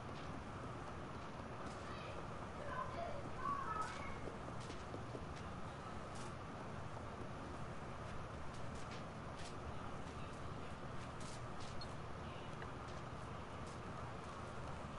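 Small footsteps patter on creaky wooden floorboards.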